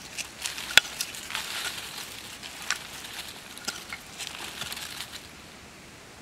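Loose earth and dry leaves rustle as soil is scooped out by hand.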